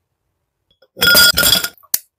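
Ice cubes clink into a glass jar.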